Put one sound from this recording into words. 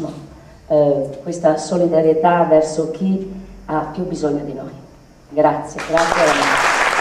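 A woman speaks with emotion into a microphone, heard through loudspeakers in a large hall.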